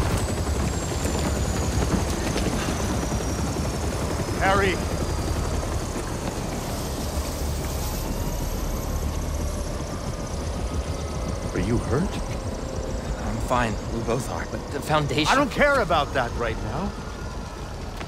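A helicopter engine drones with a low rumble.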